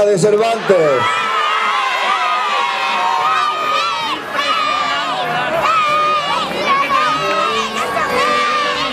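A choir sings loudly through loudspeakers outdoors.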